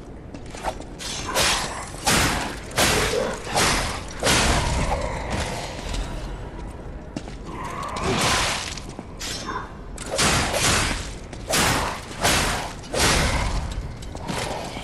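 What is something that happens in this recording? Weapons slash and strike in a fight.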